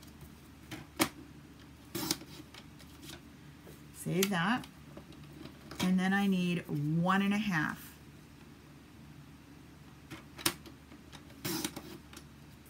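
A paper trimmer blade clicks sharply.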